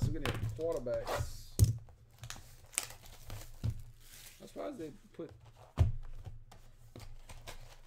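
Plastic wrapping crinkles as a box is handled.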